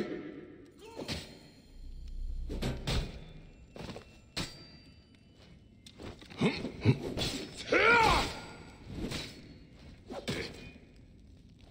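Blows and thuds land in a fight.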